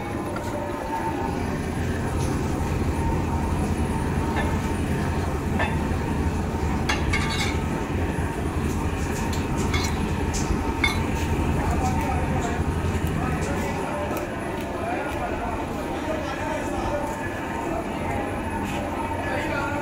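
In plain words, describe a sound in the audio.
A screw press creaks and grinds as its handle is swung round.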